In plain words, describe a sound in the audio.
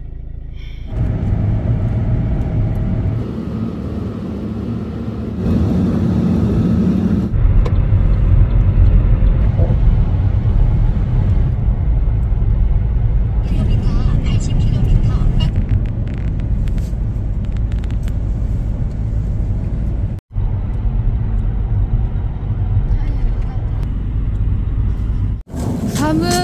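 A car drives along a highway with a steady road rumble.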